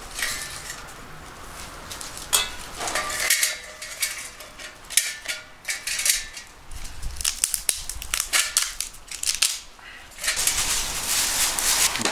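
Dry wood shavings crackle as they are broken and dropped into a metal stove.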